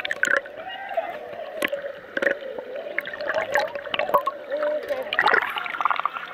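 Water gurgles and bubbles underwater, muffled.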